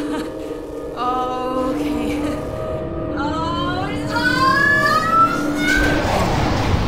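A machine whirs with rising, warbling tones.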